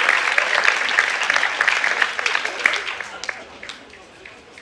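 A group of ukuleles strums together loudly, then stops.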